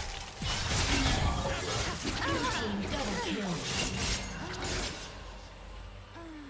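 Fantasy battle sound effects of spells and hits crackle and boom in a quick flurry.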